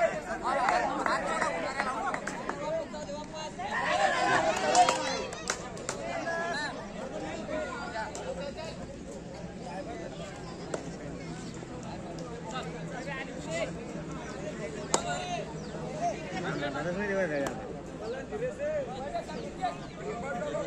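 A crowd of spectators shouts and cheers outdoors.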